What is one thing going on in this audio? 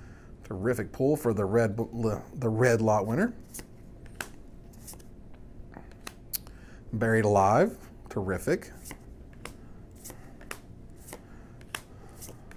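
Playing cards flick and rustle between fingers.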